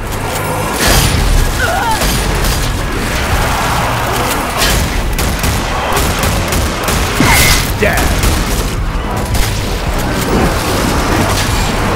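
Zombies growl and snarl nearby.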